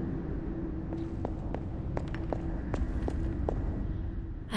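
Footsteps tap on a hard floor in a large, echoing space.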